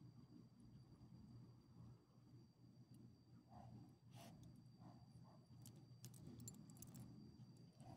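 A small dog chews and tears at a toy close by.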